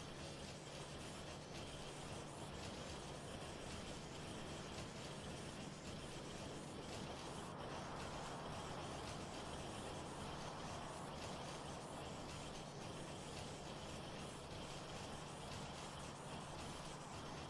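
Machines hum and whir steadily.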